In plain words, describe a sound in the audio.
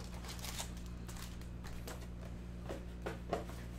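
Card packs tap down onto a stack.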